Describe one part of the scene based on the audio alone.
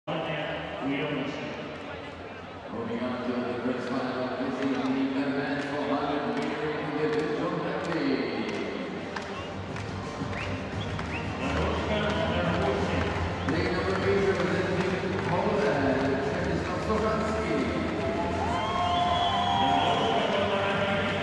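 A large crowd murmurs and cheers in a big echoing indoor hall.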